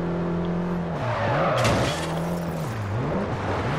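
Car tyres screech as the car brakes into a turn.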